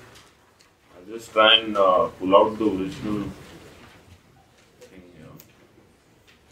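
A man speaks briefly through a microphone, then falls quiet.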